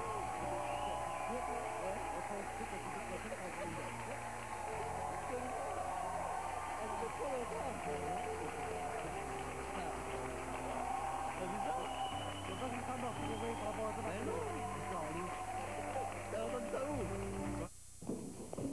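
A large studio audience applauds and cheers.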